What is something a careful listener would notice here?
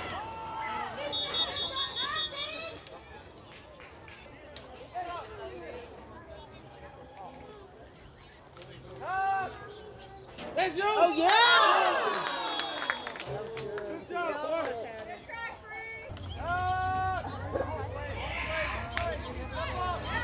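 Boys and men shout and cheer outdoors.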